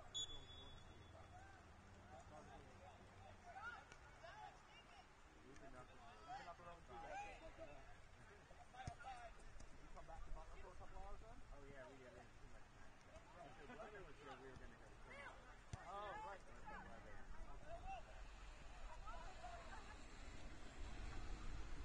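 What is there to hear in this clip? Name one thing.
Young players shout to each other across an open field outdoors.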